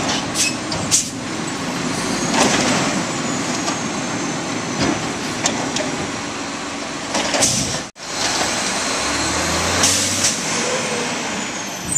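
A garbage truck engine rumbles steadily close by.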